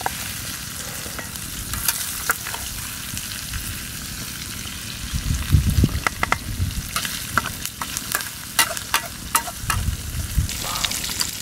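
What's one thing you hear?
A metal spoon scrapes and clinks against a hard bowl.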